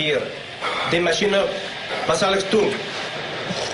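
A man speaks in a low, curt voice.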